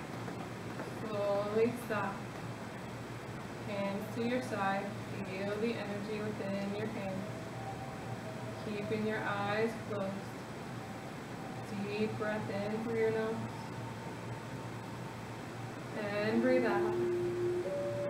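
A middle-aged woman speaks calmly, giving instructions.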